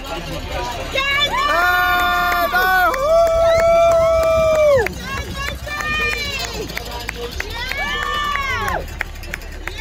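A woman cheers and whoops loudly close by.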